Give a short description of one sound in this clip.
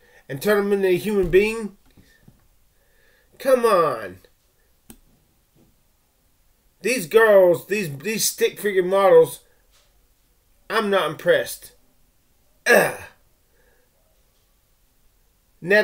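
A man talks with animation close to a microphone, in short bursts with pauses.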